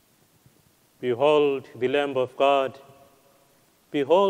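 A man sings a chant loudly through a microphone.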